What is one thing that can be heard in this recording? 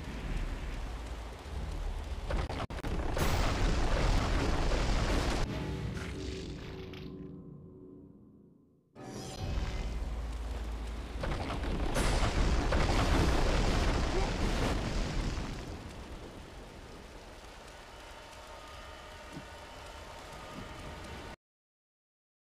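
A loud rushing wind roars and swells.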